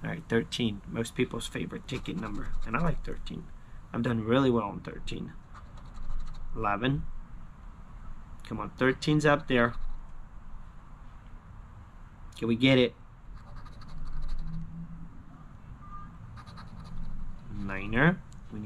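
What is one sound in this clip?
A young man talks casually and with animation close to a microphone.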